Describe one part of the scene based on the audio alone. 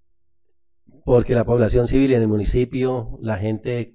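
A man speaks clearly into a microphone in a calm, steady voice.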